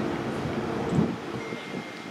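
A bat knocks a ball with a sharp crack.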